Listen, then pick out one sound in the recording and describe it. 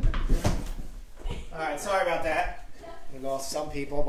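A boy falls and thumps onto a wooden floor.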